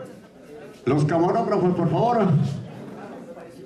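A young man speaks loudly through a microphone.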